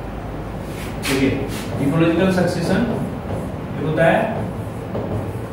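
A young man speaks calmly through a microphone, explaining.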